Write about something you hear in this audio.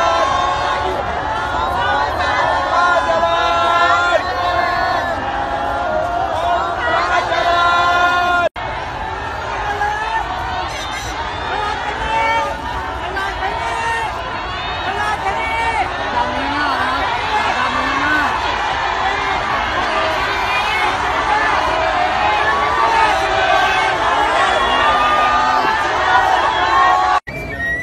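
A large crowd of men and women cheers and calls out excitedly nearby.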